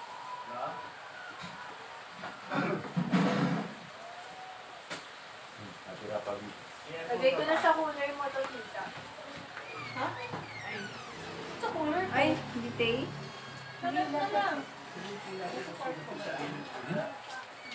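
A man and a woman talk and laugh casually nearby.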